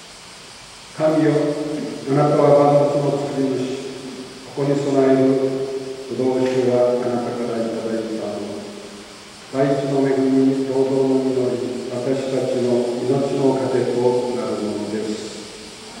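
An elderly man chants slowly into a microphone, echoing through a large hall.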